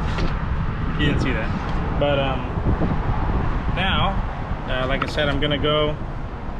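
A man speaks casually close to a microphone.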